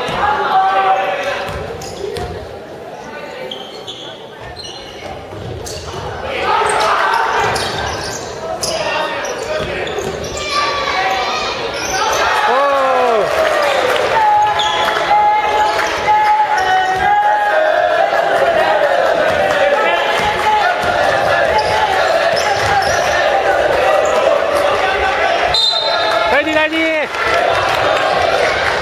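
A crowd of young spectators cheers and shouts in an echoing gym.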